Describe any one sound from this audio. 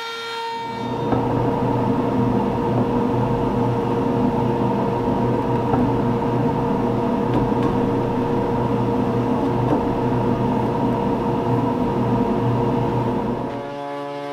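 A small electric router whines steadily as it trims wood.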